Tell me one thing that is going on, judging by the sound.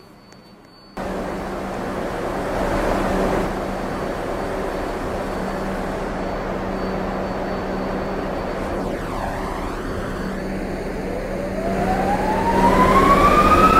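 A subway train's motor hums steadily.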